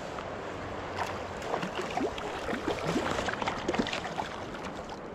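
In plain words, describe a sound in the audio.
A fish splashes in shallow water nearby.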